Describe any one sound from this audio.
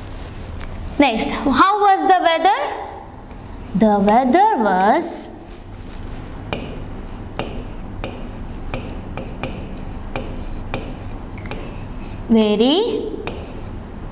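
A woman speaks calmly in short phrases.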